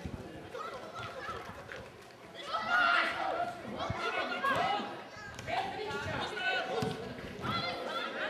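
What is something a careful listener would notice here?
Spectators cheer and talk beside the field.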